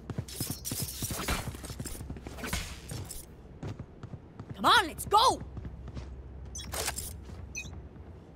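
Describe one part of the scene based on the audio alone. A game ability crackles and whooshes as it is cast.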